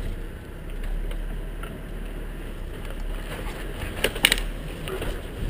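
A vehicle rattles and clunks over bumpy ground.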